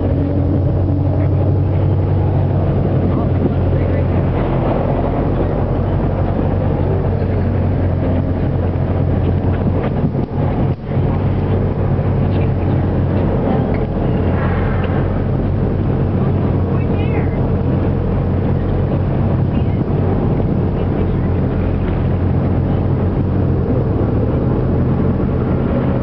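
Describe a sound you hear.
Strong wind rumbles loudly across the microphone outdoors.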